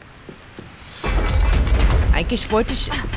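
A heavy rumbling thud sounds as a figure drops down a shaft.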